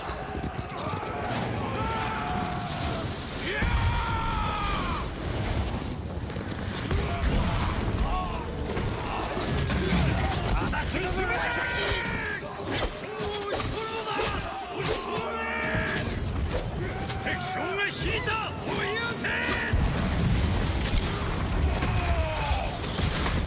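Fire rockets whoosh overhead and burst.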